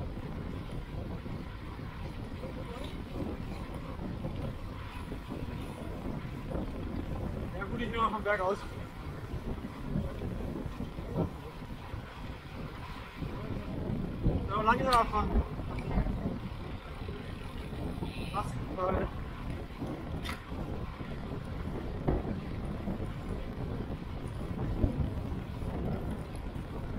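Wind rushes loudly past a fast-moving bicycle.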